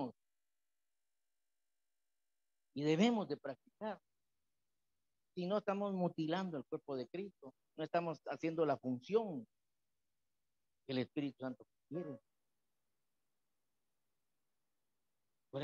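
A man speaks with animation into a microphone, in bursts with pauses.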